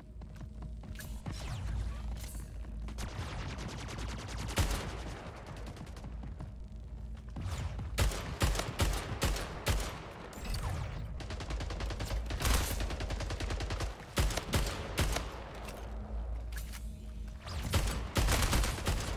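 Rapid gunfire rattles in quick bursts.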